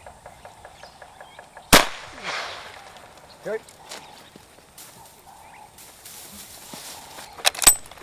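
Footsteps crunch on dry burnt grass.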